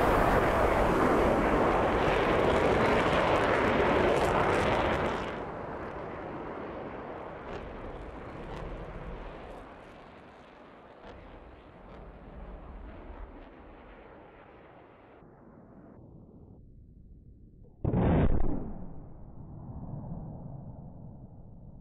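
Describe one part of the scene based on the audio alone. Jet engines roar steadily in the distance.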